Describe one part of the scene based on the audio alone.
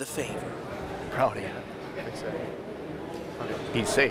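A young man talks in a crowded echoing hall.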